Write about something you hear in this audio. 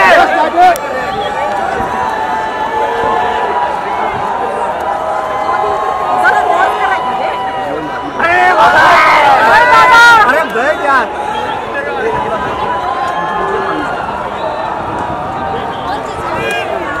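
A crowd cheers and shouts in a large open stadium.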